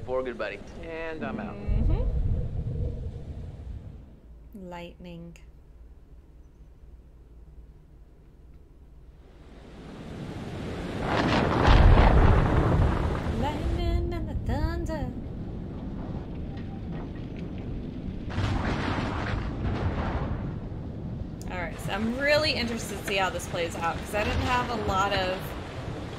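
A young woman talks into a microphone.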